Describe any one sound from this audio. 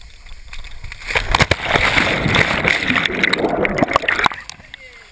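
Water bubbles and churns loudly underwater.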